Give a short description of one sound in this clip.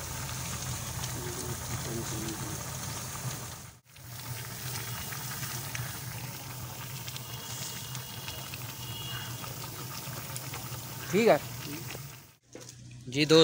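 Meat sizzles and steams in a hot pot.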